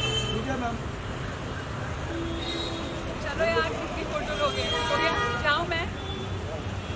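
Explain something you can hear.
Traffic rumbles on a street outdoors.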